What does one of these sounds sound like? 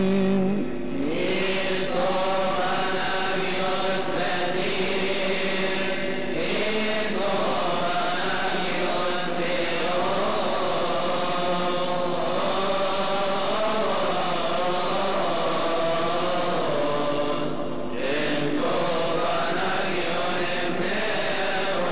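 A choir of men sings together.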